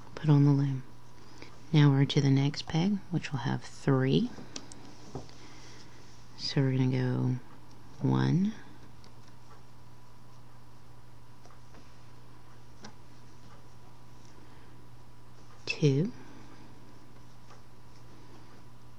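A metal hook clicks softly against plastic pegs.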